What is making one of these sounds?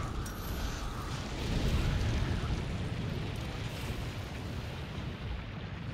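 Fire roars with a deep rumble.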